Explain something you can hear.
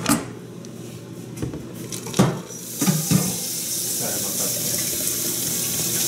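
Water pours into a glass jug.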